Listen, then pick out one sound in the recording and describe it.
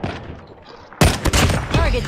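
A rifle fires a loud single shot.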